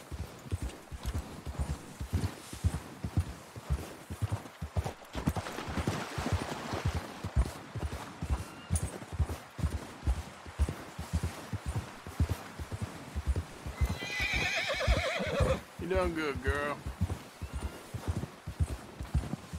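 Hooves thud steadily through snow as a horse trots.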